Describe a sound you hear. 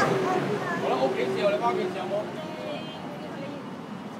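Adults chat nearby on the street.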